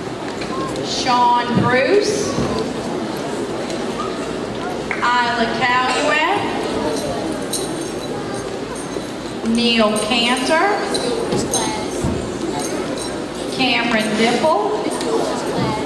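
A woman reads out through a microphone in a large echoing hall.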